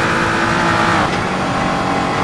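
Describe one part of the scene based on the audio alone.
A race car engine drops sharply in pitch as it shifts up a gear.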